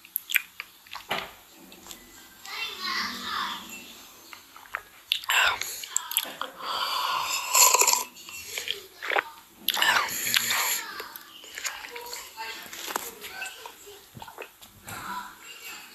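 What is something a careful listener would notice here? A young man gulps a drink.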